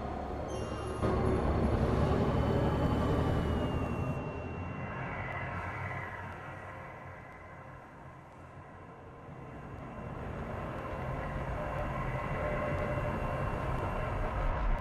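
Wind rushes loudly past during a fast glide through the air.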